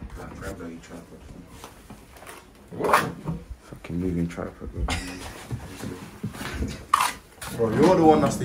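A trowel scrapes across a wet floor.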